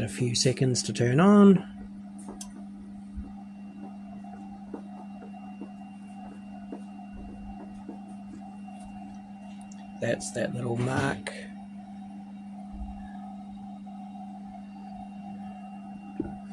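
A computer hums steadily.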